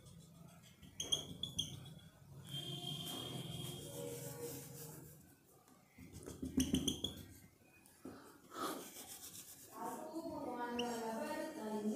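A marker squeaks on a whiteboard in short strokes.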